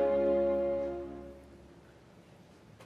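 A woman sings a long held note that fades away.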